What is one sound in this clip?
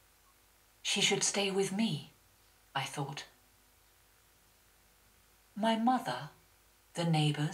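A man speaks calmly through a microphone in a large room, in short phrases with pauses.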